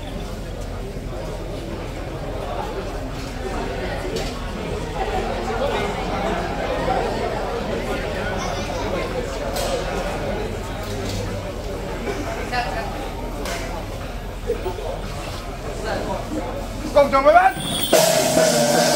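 A crowd of men and women chatters and murmurs outdoors.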